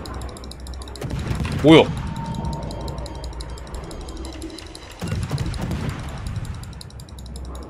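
Naval guns boom with deep rumbling blasts.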